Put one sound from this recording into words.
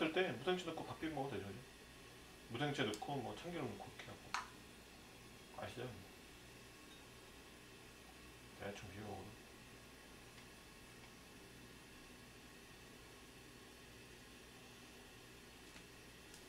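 Chopsticks tap and clink against a bowl.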